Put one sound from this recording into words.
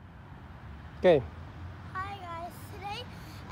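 A young child speaks loudly and clearly close by.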